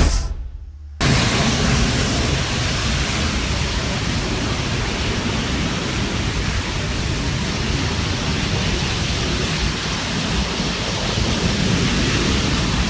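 A burning city bus roars with flames.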